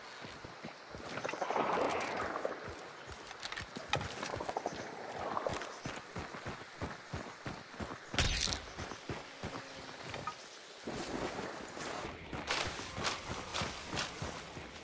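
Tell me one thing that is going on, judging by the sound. Footsteps crunch quickly over gravel and rough ground.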